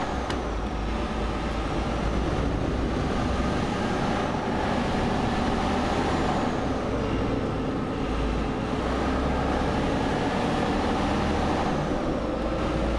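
Tyres roar on the road surface.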